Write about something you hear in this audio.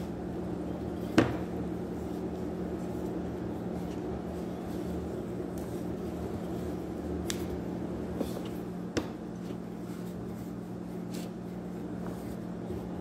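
A wooden rolling pin rolls and rumbles over dough on a counter.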